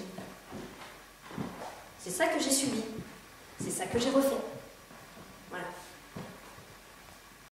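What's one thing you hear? A middle-aged woman speaks expressively, close by.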